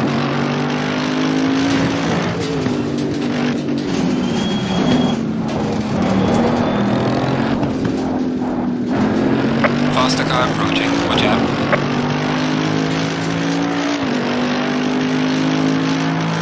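A racing car engine roars, dropping in pitch as the car brakes and rising again as it speeds up.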